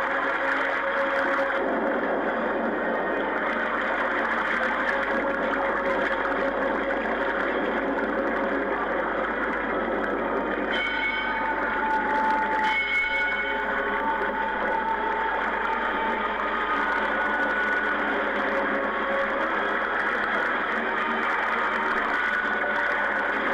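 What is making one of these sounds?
Ocean waves crash and roar.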